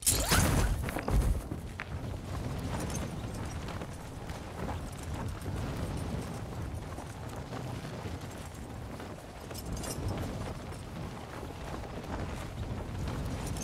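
Wind rushes and buffets steadily past.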